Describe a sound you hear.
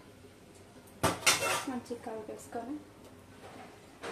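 A metal spoon clanks onto a metal plate.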